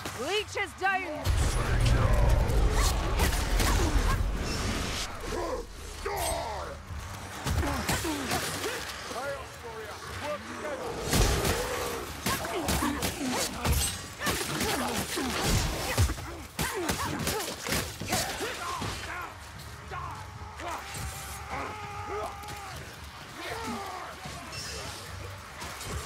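Swords slash and strike creatures in quick, sharp blows.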